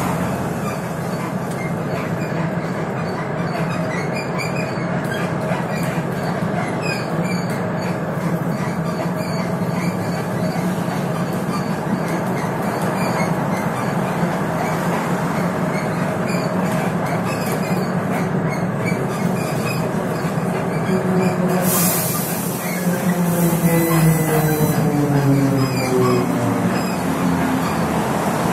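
A bus rattles and vibrates over the road.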